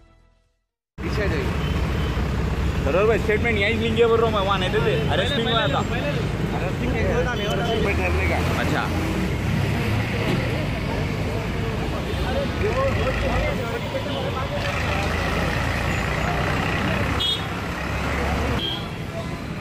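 A crowd of men chants slogans loudly outdoors.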